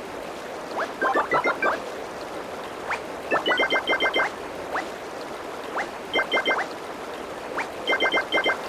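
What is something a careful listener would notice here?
Coin pickup chimes ring out in a mobile runner game.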